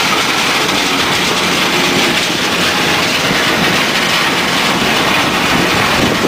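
A conveyor belt rattles as it carries crushed stone.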